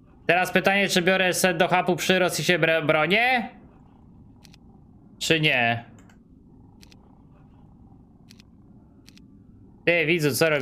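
A man talks with animation into a close microphone.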